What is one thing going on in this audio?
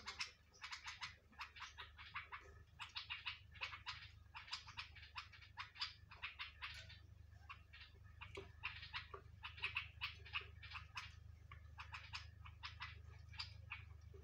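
A bird's beak taps against a metal plate.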